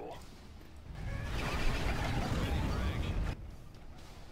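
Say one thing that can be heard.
Explosions boom and rumble heavily.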